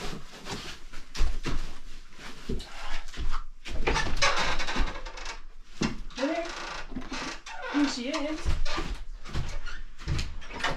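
Footsteps thud and shuffle across a floor.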